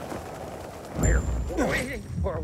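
A heavy thud sounds as a person lands on the ground.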